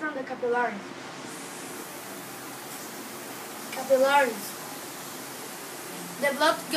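A young boy speaks through a handheld microphone, presenting in short bursts.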